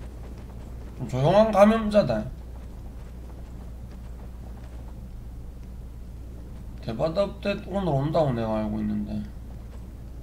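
A young man speaks expressively into a close microphone.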